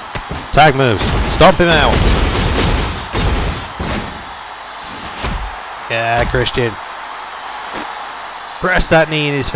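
Heavy stomps thud again and again on a wrestler.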